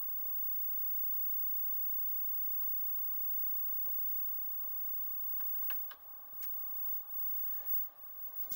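A computer hums steadily.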